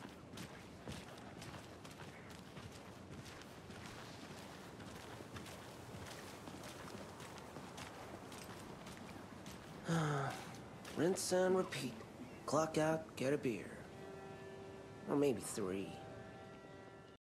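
Footsteps walk along pavement and wooden boards.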